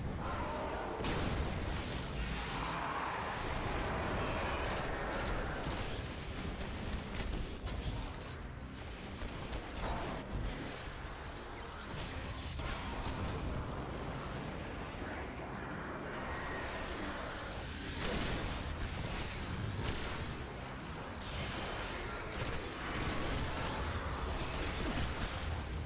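Video game explosions boom.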